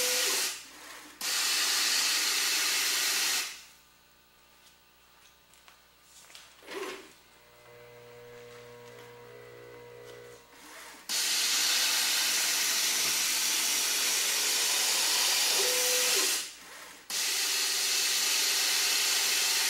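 Fine powder pours into a cup with a steady, rushing hiss.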